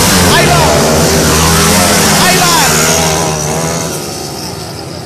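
A dirt bike engine roars loudly close by, then fades as it rides away.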